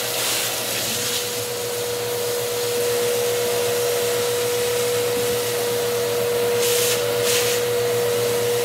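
A vacuum hose sucks air with a hissing rush.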